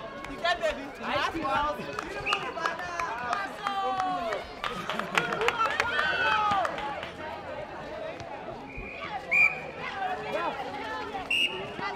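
Players shout to each other.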